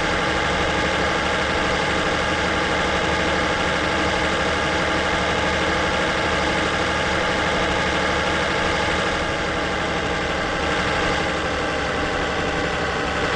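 A truck's diesel engine rumbles steadily as it drives along.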